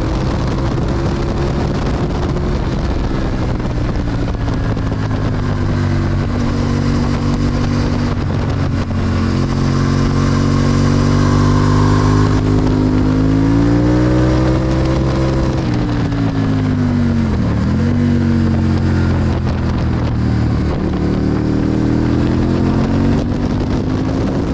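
Wind rushes hard past the microphone.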